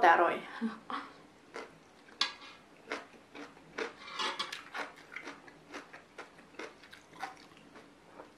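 A young woman chews and crunches food close to a microphone.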